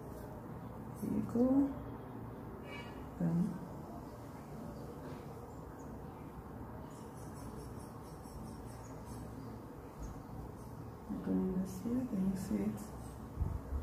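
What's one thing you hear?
A woman speaks briefly and softly, close by.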